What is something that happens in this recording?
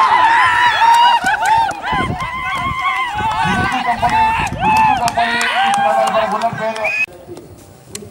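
Young men shout and cheer outdoors.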